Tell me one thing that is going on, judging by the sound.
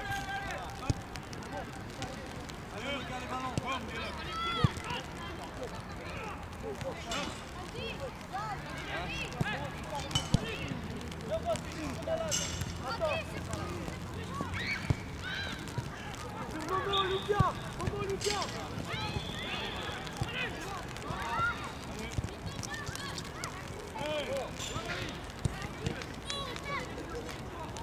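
Children shout and call out across an open outdoor field.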